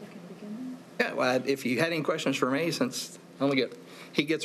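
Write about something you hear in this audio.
A woman speaks steadily into a microphone.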